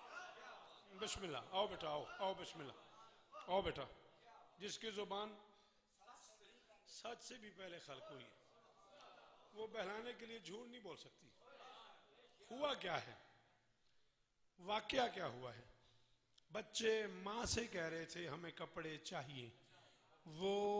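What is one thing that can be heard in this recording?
A man speaks with feeling into a microphone, heard through loudspeakers in an echoing hall.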